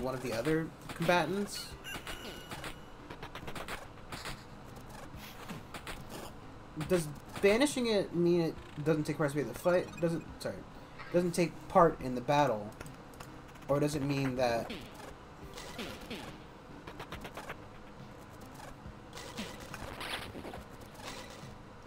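Short blows and hits clash in a fight.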